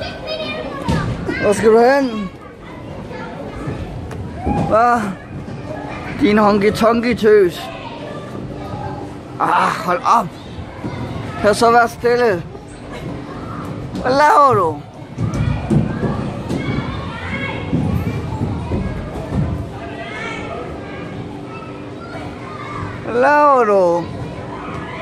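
A young girl squeals and shouts playfully, close by.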